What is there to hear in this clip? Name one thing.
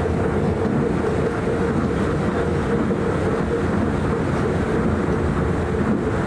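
A train roars louder inside a tunnel.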